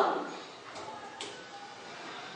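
A metal rack clinks against a metal tank.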